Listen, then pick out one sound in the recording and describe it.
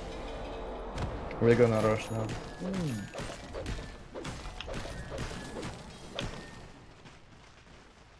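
Spell effects crash and whoosh during a game battle.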